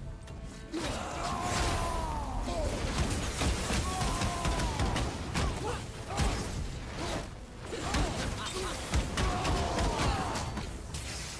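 A large monster lets out loud, wavering shrieks.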